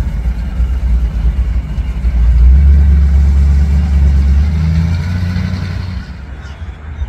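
A hot rod coupe rumbles past at low speed.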